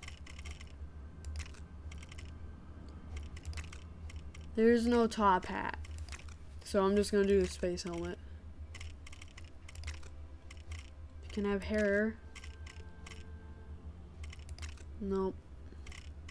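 Short soft clicks tick now and then as menu options change.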